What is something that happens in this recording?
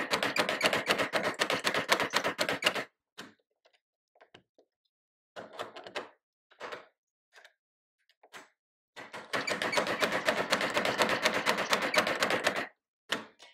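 A metal cutting machine scrapes rapidly as a blade shaves metal.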